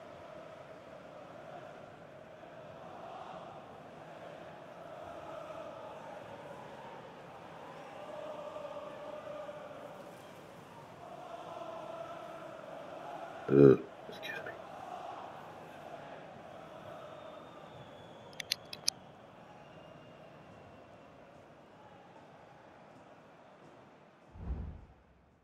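A large crowd chants and cheers in a stadium.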